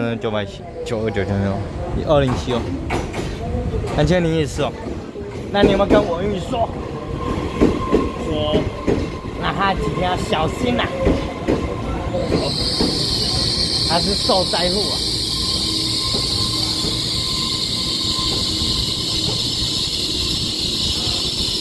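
A train's wheels clatter on the rails.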